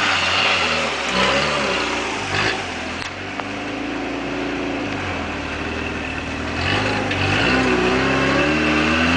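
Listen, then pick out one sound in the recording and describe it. Tyres grind and scrape over rock.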